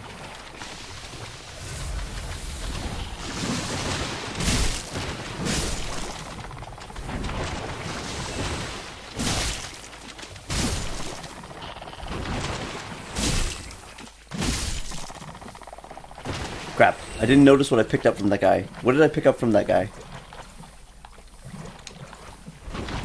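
Armoured footsteps crunch over stony ground.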